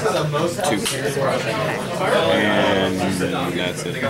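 Playing cards riffle and slap as a hand shuffles them.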